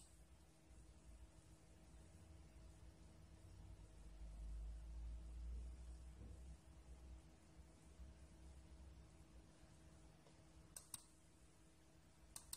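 A computer monitor hums steadily.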